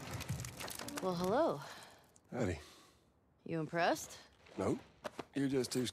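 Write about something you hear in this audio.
A young woman speaks playfully close by.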